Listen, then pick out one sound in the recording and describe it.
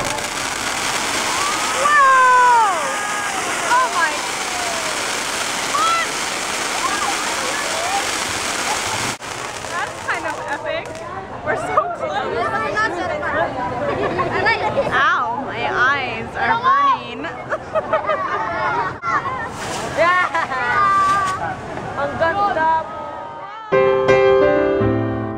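Fireworks crackle and hiss loudly.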